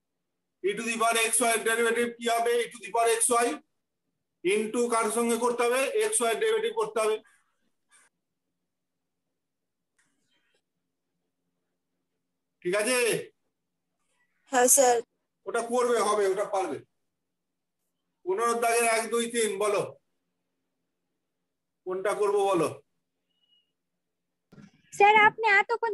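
A man speaks with animation close to a microphone, pausing between phrases.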